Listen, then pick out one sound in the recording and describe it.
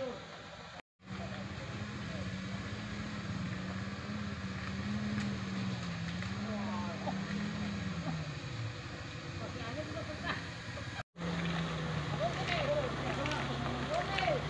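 A car engine revs and strains in mud.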